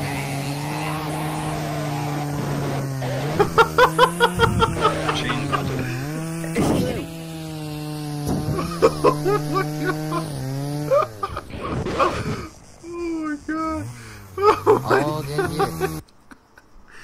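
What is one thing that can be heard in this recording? A chainsaw engine runs with a steady, rough drone.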